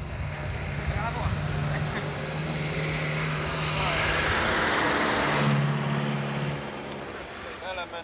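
A group of adults talks in the distance outdoors.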